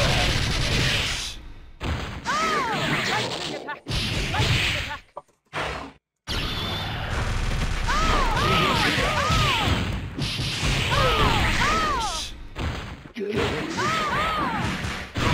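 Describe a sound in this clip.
Punches and energy blasts from a video game crash and zap in quick bursts.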